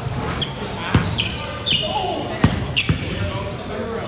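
A basketball bounces on the floor with echoing thuds.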